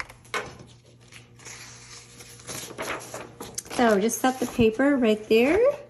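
A sheet of paper rustles and slides.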